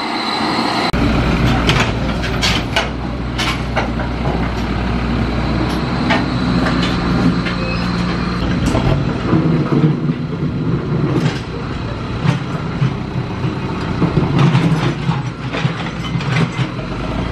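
A dump truck engine idles with a low rumble.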